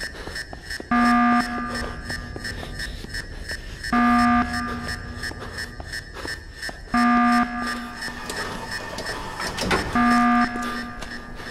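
A phone beeps loudly at regular intervals.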